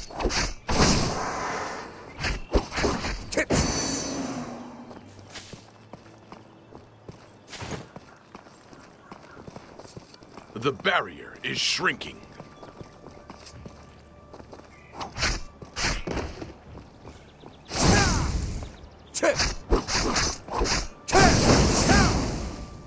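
Magic blasts crackle and burst.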